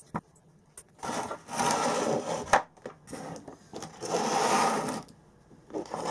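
Metal cylinders roll and scrape across a wooden table.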